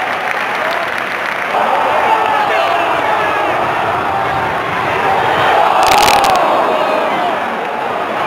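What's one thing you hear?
A crowd of fans claps hands.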